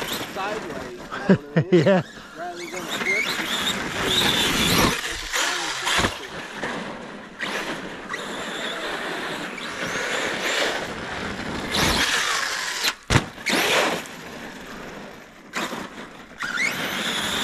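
A toy car's electric motor whines and revs at high speed.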